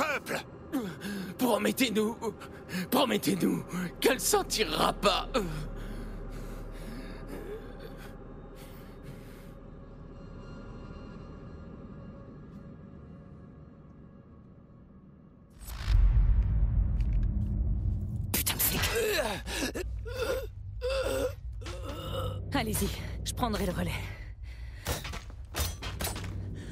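A woman speaks tensely.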